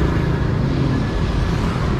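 A motorbike engine hums as it passes.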